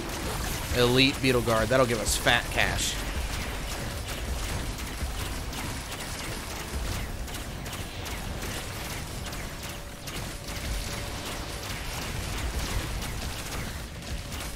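Game effects crackle and whoosh during a fight.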